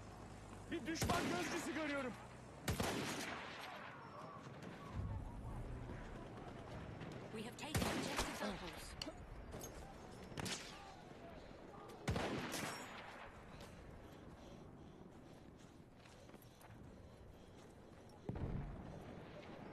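A rifle fires loud sharp shots, one at a time.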